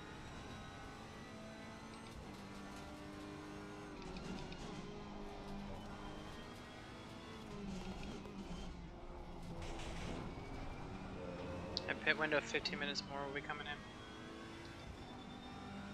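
A racing car engine drones and shifts pitch as the car speeds up and slows for corners.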